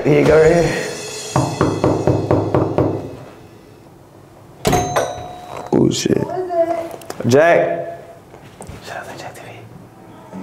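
Knuckles knock on a door.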